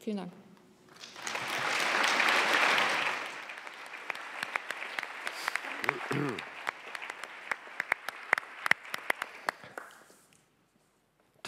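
An audience applauds with clapping in a large hall.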